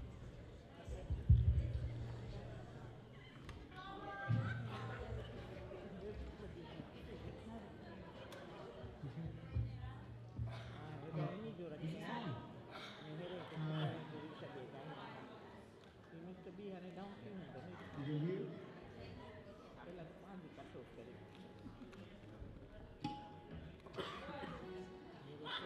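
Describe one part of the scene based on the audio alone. A band plays music.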